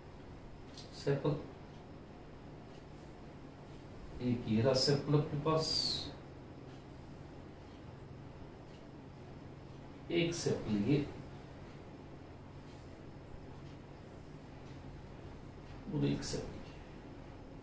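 A middle-aged man speaks calmly in short bursts, close by.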